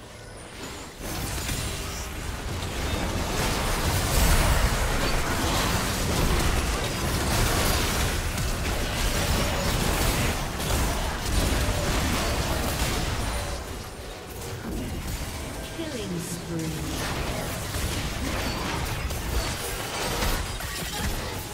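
Game spells whoosh, crackle and boom in a busy fight.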